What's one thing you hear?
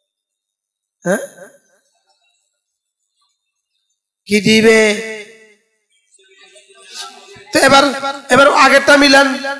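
A middle-aged man speaks with animation into a headset microphone, with pauses between phrases.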